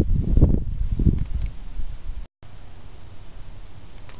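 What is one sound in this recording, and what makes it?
Pruning shears snip through a plant stem.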